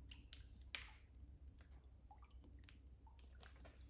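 Cooking oil glugs and splashes as it pours into a pan.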